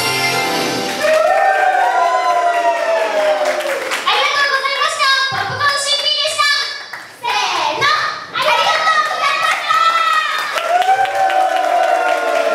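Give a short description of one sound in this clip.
Two young girls sing together through microphones.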